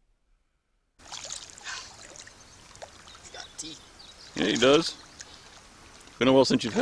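Water splashes as a fish thrashes in the shallows.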